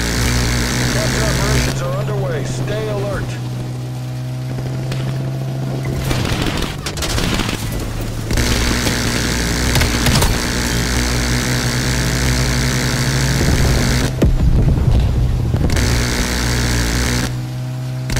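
A boat engine drones steadily at speed.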